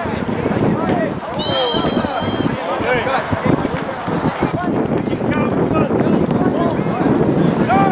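Wind blows across an open outdoor field.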